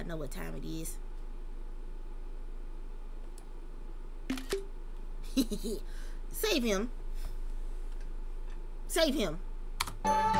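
A young woman speaks calmly and casually, close to a microphone, in short bursts.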